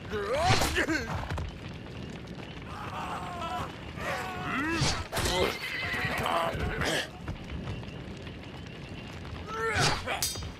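A horse gallops past with pounding hooves.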